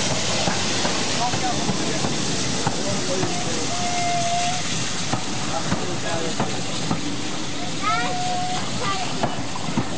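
Train wheels clatter and squeal on rails as carriages roll past close by.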